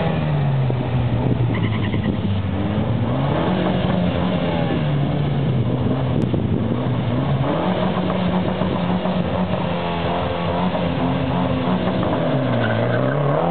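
A car engine revs up and down repeatedly while idling nearby.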